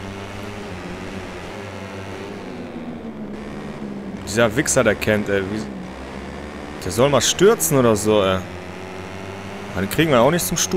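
Racing motorcycle engines roar steadily.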